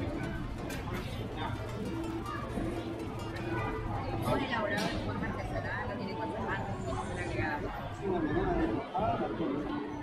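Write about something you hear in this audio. Many people chatter and talk at once nearby.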